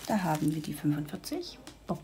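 Small beads rattle inside a plastic bag.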